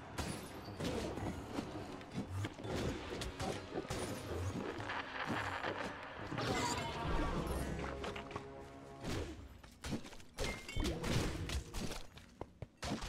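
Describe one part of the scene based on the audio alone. Weapons strike and clash rapidly in a game battle.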